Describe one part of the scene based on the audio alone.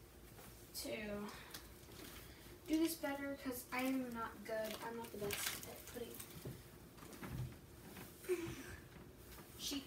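A bedsheet rustles and flaps.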